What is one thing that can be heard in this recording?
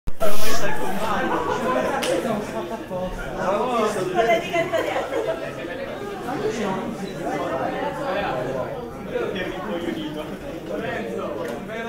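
A middle-aged man speaks calmly, lecturing.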